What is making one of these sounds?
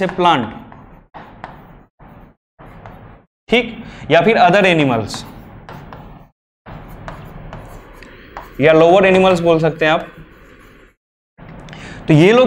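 A young man speaks with animation, explaining close by.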